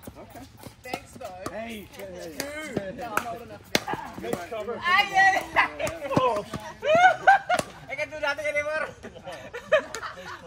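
Paddles hit a plastic ball with sharp pops.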